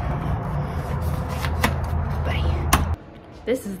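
A letter flap clacks as a letter is pushed through.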